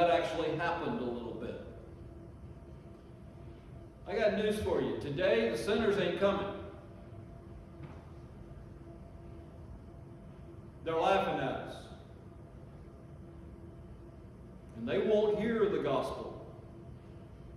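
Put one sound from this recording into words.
An elderly man speaks slowly and with emphasis into a microphone, in short phrases with long pauses, in an echoing room.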